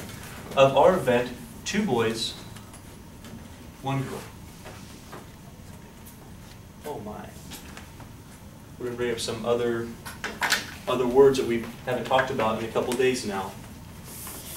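A man talks calmly, heard from a distance.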